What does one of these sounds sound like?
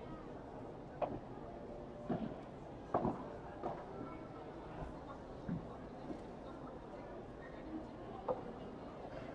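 Padel rackets strike a ball with sharp pops.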